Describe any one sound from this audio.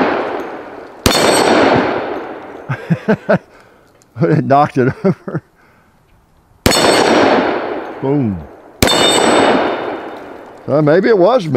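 A pistol fires loud single shots that echo and fade outdoors.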